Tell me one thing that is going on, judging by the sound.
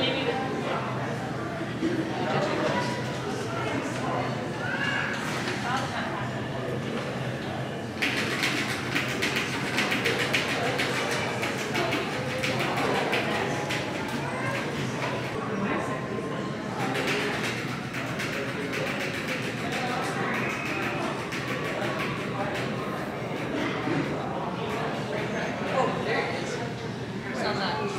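A crowd of adults murmurs and chatters indistinctly in a large echoing hall.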